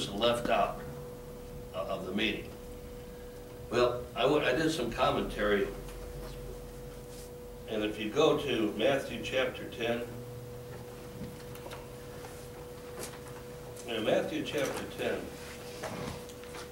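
A middle-aged man speaks calmly in bursts with long pauses.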